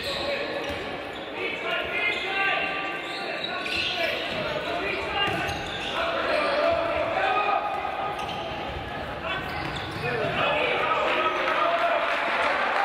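A crowd of spectators cheers and chants in a large echoing hall.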